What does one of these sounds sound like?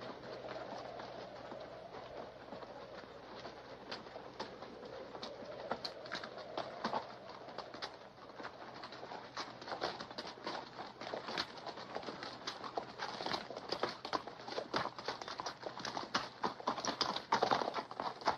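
Hooves of a group of walking horses clop on rocky ground.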